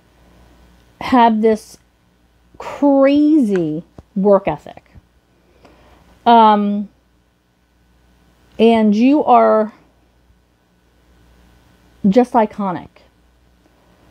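A woman speaks close by in short, expressive phrases with pauses between them.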